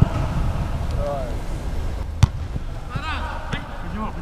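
Men shout to each other in the distance across a large open stadium.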